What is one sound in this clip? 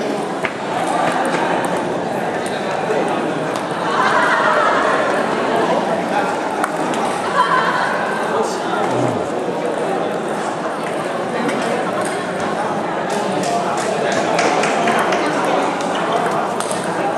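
Ping-pong balls click against paddles and tables in a large echoing hall.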